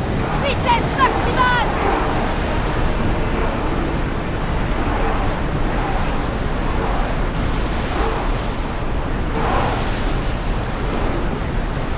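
Water rushes and splashes against a ship's hull.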